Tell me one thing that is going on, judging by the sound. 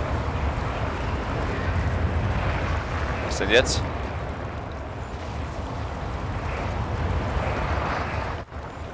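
Strong wind roars and howls steadily, with a low rumble.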